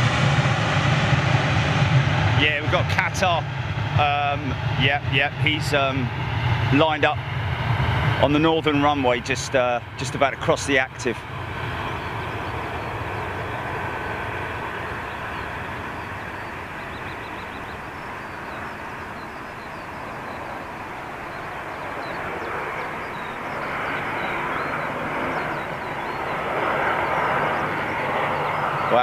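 A jet airliner's engines roar loudly as it rolls down a runway.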